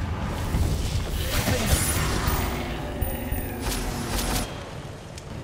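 Magic spells crackle and burst.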